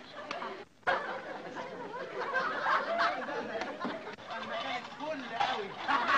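A young woman speaks cheerfully.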